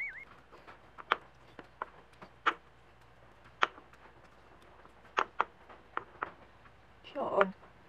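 A pestle knocks and grinds in a stone mortar.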